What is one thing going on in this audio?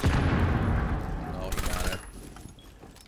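Rapid gunshots fire in a quick burst.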